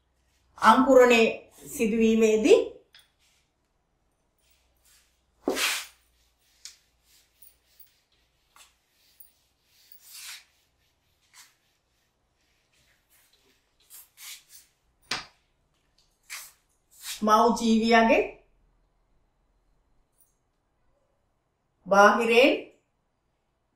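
A woman speaks calmly in short bursts, close by.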